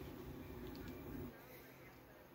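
Muffled sound plays from a television, then cuts off.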